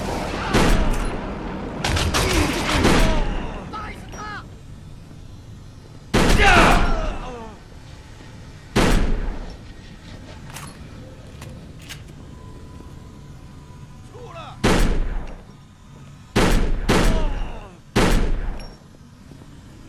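A shotgun fires loud blasts that echo.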